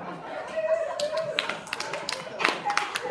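Feet stamp and shuffle on the floor as girls dance.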